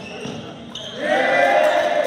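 Spectators on the sidelines cheer loudly.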